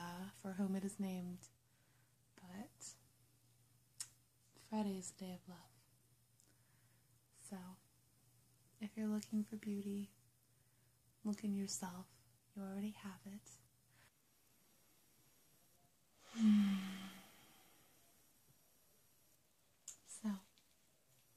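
A young woman talks softly and closely into a microphone.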